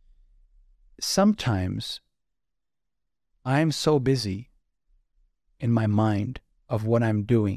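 A man speaks thoughtfully into a close microphone, with pauses.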